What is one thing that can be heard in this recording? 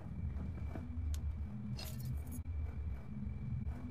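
A fridge door opens with a soft click.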